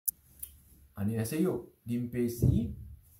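A man speaks calmly, close to the microphone.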